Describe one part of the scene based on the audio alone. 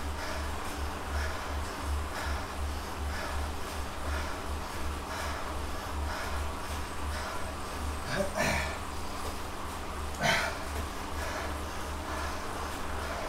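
A bike trainer whirs in a steady pulsing rhythm as a rider pedals.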